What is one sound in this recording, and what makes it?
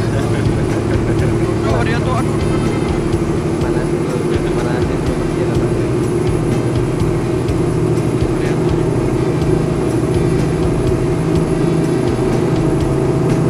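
A bus engine hums steadily while driving on a highway.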